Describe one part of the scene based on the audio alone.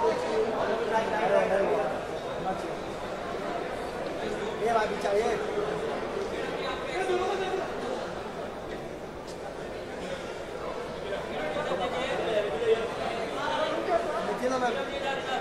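A crowd of men call out and chatter loudly nearby.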